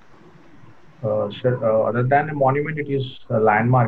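A young man speaks calmly into a microphone close by.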